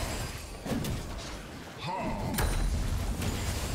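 Video game spell and hit effects clash and crackle.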